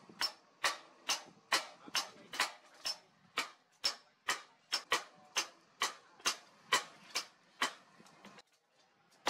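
A hammer rings sharply on hot metal against an anvil in a steady rhythm.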